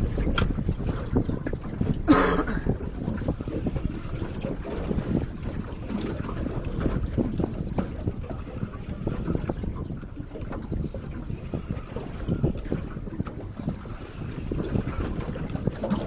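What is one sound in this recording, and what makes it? Waves slap against the hull of a boat.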